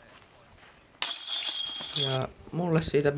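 A flying disc crashes into metal chains, which rattle and jingle.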